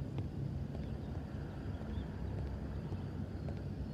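Footsteps fall on a wooden floor.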